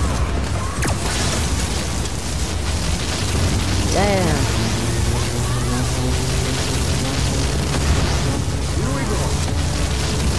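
An electric weapon crackles and buzzes in loud bursts.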